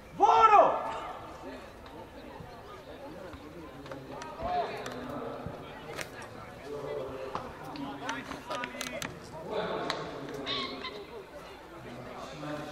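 Young male players shout and call to each other outdoors.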